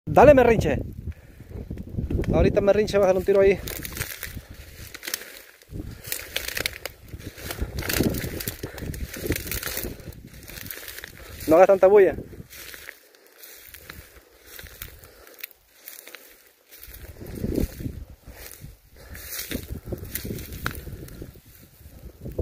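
Leafy plants rustle and swish as a person moves through them.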